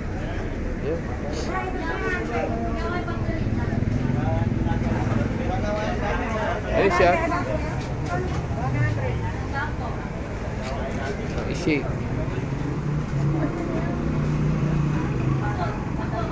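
A middle-aged woman talks nearby.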